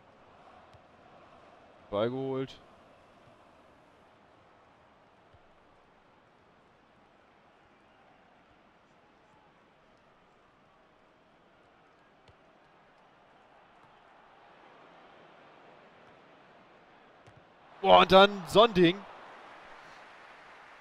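A large crowd murmurs steadily in a stadium, swelling towards the end.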